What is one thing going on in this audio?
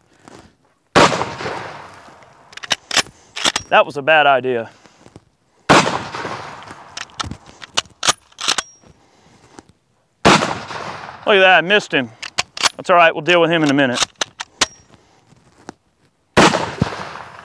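A shotgun fires loud blasts that echo outdoors.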